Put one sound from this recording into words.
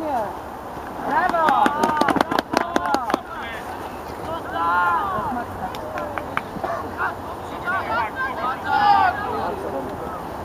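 Teenage boys shout to each other across an outdoor football pitch.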